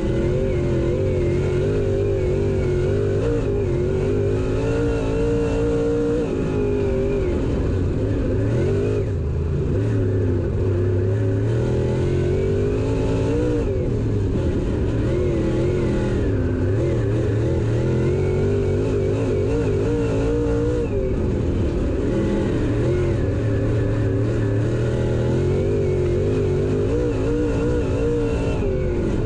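A race car engine roars loudly close by, rising and falling in pitch as the driver speeds up and lets off.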